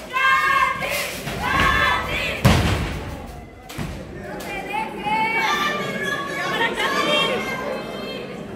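Spectators shout and cheer loudly in an echoing room.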